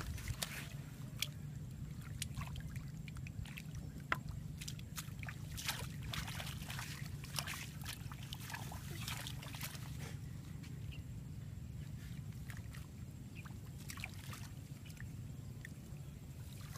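Hands splash and scoop in shallow muddy water.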